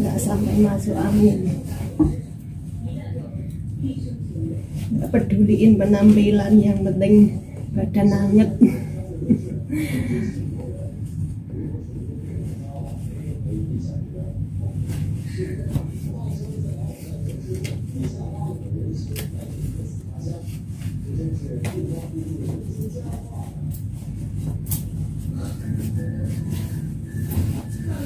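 A woman speaks with animation close to the microphone.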